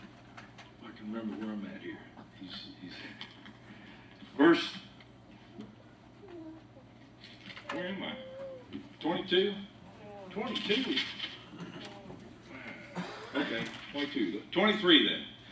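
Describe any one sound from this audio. An older man speaks calmly through a microphone in a room with a slight echo.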